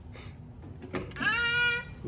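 A toddler babbles in a high voice.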